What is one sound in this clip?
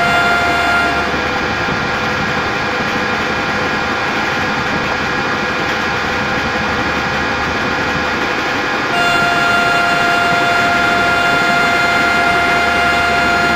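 An electric train's motors whine with a steady high hum.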